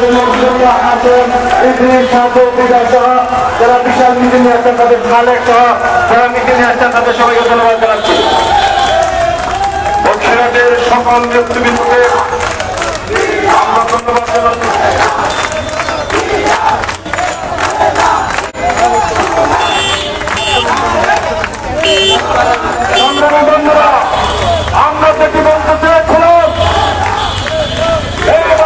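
A large crowd of men chants slogans loudly outdoors.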